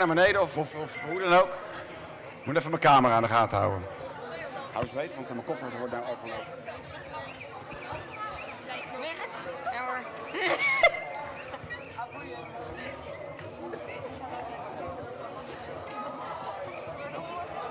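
A large crowd of children and adults chatters loudly in a big echoing hall.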